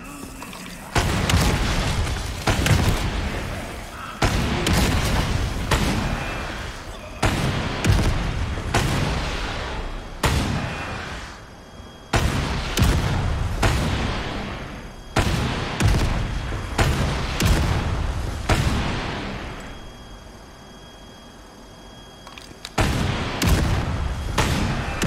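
Explosions thunder and rumble away.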